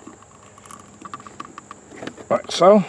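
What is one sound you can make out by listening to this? A plastic cable tie clicks as it is pulled tight.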